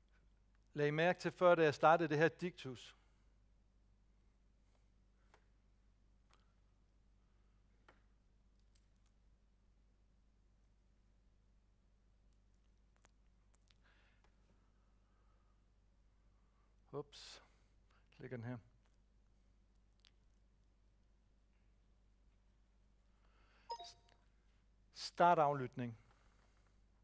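A man speaks calmly into a microphone in short bursts with long pauses.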